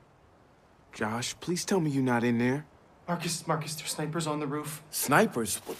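A young man speaks anxiously.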